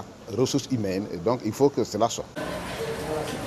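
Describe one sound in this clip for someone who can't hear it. A middle-aged man speaks calmly and up close into microphones.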